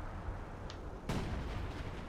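A heavy armoured vehicle's engine rumbles low.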